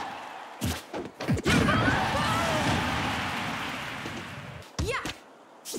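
Fighting game sound effects whoosh and thud in quick bursts.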